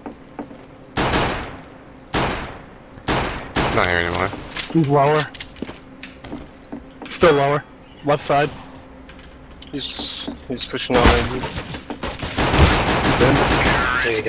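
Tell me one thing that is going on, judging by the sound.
Gunshots crack loudly in a game, one at a time.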